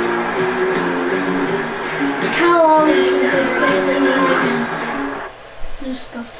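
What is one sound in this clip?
Music plays loudly from a television loudspeaker and stops abruptly.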